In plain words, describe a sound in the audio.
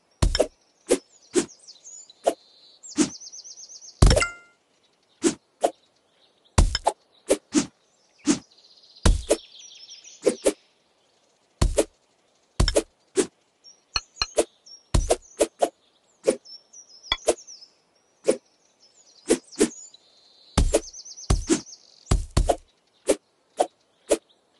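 A knife lands with sharp chopping thuds again and again.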